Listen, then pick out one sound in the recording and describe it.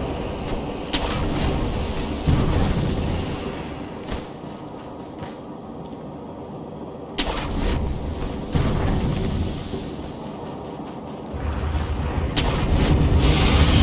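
A grappling rope whips and snaps taut several times.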